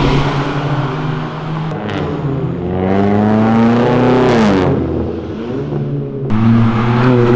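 Car engines rev loudly and roar as they accelerate past.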